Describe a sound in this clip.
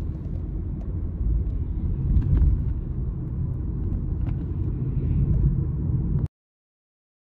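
A car's cabin rumbles low as it drives.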